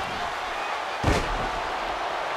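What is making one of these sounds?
A body slams hard onto the wrestling ring mat with a loud thud.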